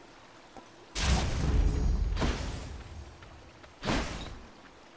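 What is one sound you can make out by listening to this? A fiery blade swooshes and blasts in loud bursts.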